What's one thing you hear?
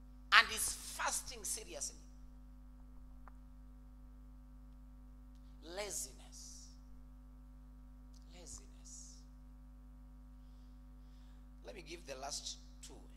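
A man speaks with animation into a microphone, pausing between phrases.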